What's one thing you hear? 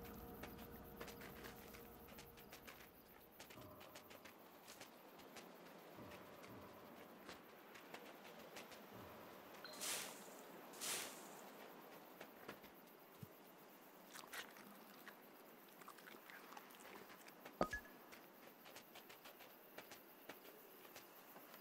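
Paws crunch softly through snow.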